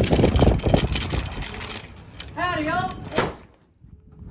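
A cart's wheels roll and rattle over pavement.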